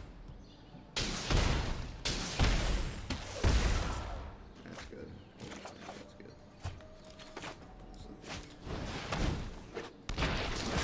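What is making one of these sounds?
Magical whooshing effects swell and fade.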